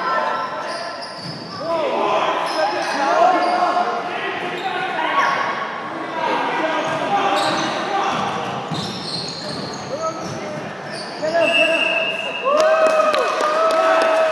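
Young players shout and call out to each other in an echoing hall.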